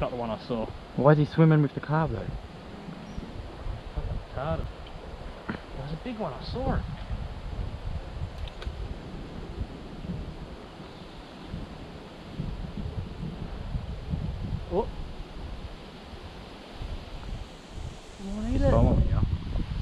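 A woman speaks close by, calmly and in short bursts.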